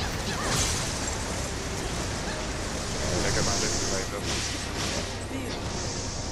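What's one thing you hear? Rushing wind-like whooshes swell and fade as a fighter dashes through the air.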